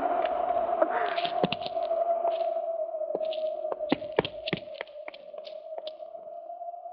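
Gunshots crack several times.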